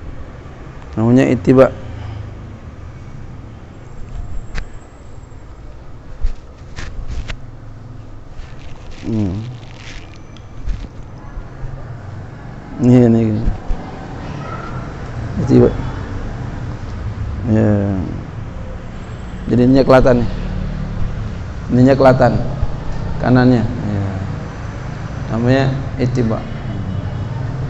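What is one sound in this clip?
A man speaks through a microphone in short, calm phrases with long pauses.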